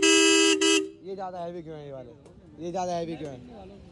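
A horn plays a quieter wavering, warbling tune.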